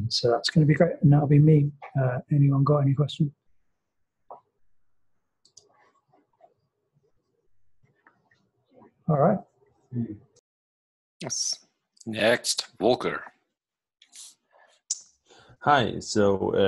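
Men speak in turn over an online call.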